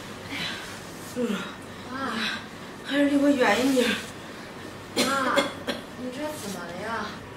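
A young woman asks a question with concern.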